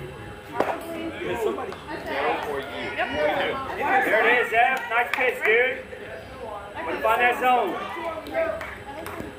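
Young players shout and cheer outdoors.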